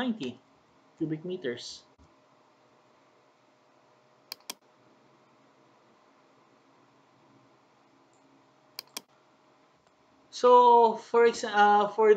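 A man speaks calmly and close to a microphone, with pauses.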